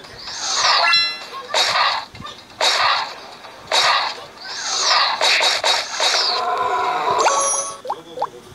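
Video game battle effects clash and burst repeatedly.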